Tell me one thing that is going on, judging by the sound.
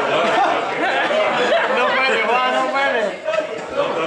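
A bald middle-aged man laughs.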